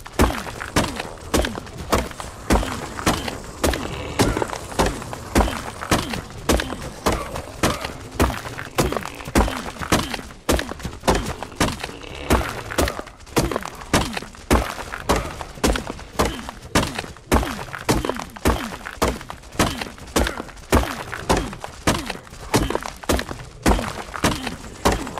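A hatchet chops into wood with rapid, repeated thuds.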